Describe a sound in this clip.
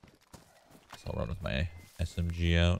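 A man speaks loudly and with animation close to a microphone.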